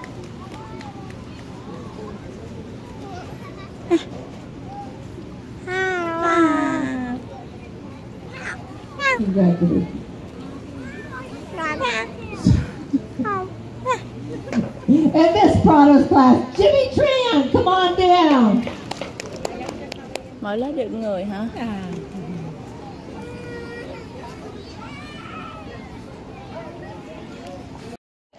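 A crowd of children chatters and murmurs outdoors.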